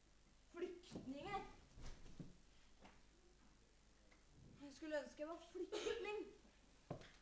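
A young woman speaks with animation on a stage.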